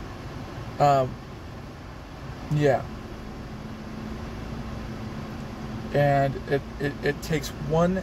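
A young man speaks in short bursts close by, casually.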